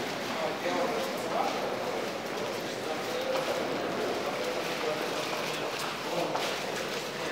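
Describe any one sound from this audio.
Voices of passers-by murmur and echo in a large hard-walled passage.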